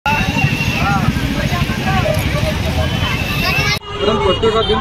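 A crowd chatters loudly outdoors.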